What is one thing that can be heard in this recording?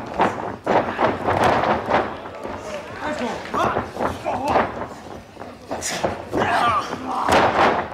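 A wrestler's body slams onto a wrestling ring mat with a hollow thud.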